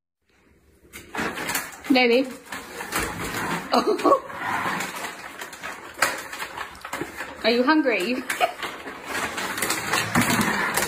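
A dog rummages and knocks about in a plastic bin.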